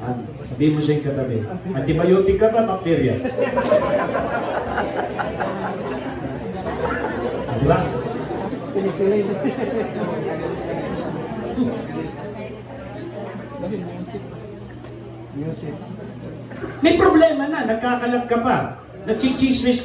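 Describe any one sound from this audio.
A middle-aged man preaches with animation to a congregation.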